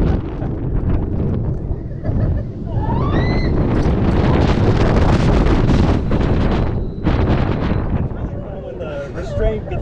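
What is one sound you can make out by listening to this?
A roller coaster rattles and rumbles along its track.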